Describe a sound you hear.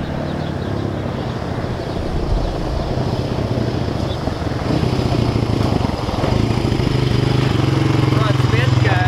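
A quad bike engine drones as it approaches and grows louder.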